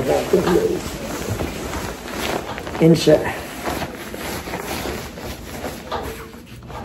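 Clothing fabric rustles as a jacket is pulled on.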